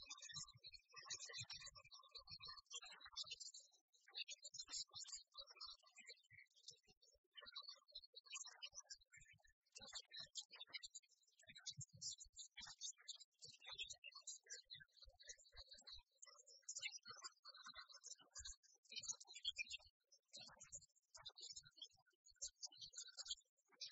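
A woman speaks to an audience.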